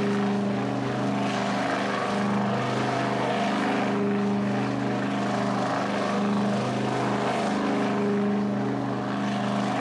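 Tyres spin and screech on tarmac.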